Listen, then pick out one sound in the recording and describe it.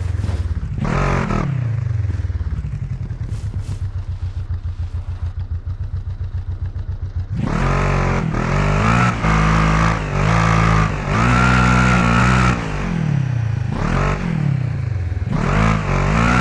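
An off-road buggy engine revs hard, rising and falling as the gears shift.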